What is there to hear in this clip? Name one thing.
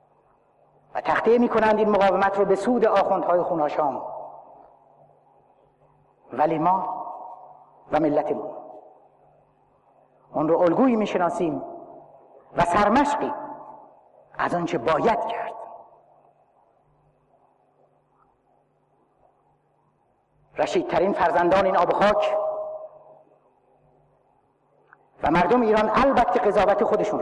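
A middle-aged man speaks forcefully into a microphone in a large echoing hall, pausing between phrases.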